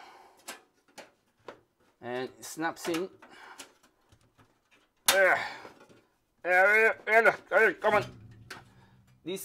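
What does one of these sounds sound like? Small metal parts click and rattle as they are fitted into place.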